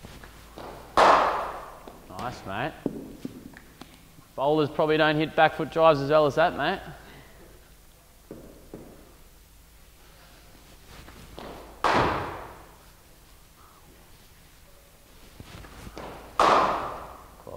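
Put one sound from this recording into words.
A cricket bat cracks sharply against a ball, echoing in a large hall.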